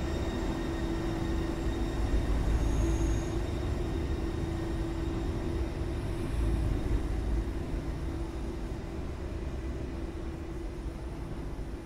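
A metro train rumbles away through a tunnel, its hum slowly fading.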